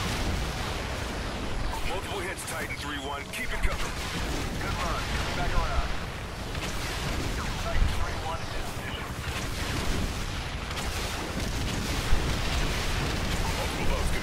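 Explosions boom and splash into water.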